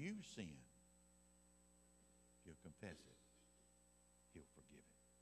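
An elderly man speaks in short, emphatic phrases through a microphone in a large room.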